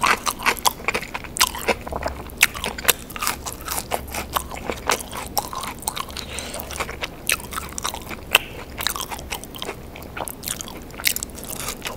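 Crispy fries rustle and crackle as they are picked up.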